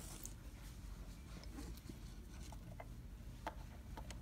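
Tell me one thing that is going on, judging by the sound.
A hand press clicks and thunks as it crimps a snap.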